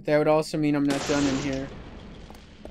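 A handgun fires a single shot.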